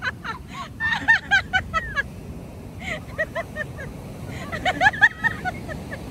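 Young women shriek and laugh excitedly nearby.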